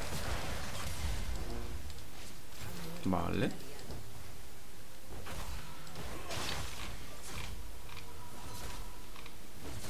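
Weapons strike with sharp, repeated impacts.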